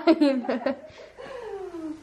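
A baby laughs.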